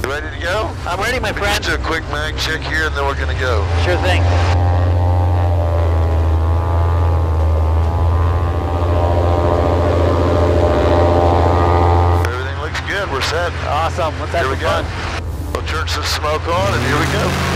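A man talks with animation through a headset microphone.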